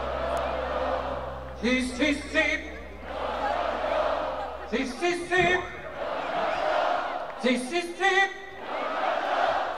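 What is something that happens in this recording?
A large crowd cheers and roars in a huge open stadium.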